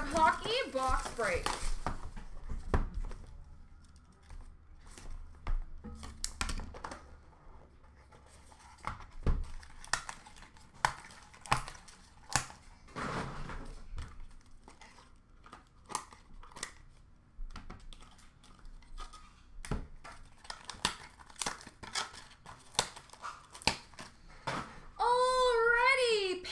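Hands shuffle and set down plastic game cases with light clicks and clatters.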